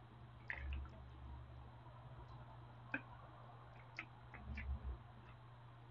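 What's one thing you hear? A young man drinks from a bottle with soft gulps.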